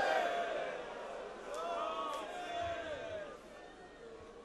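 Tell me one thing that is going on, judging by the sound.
A crowd of men chants along.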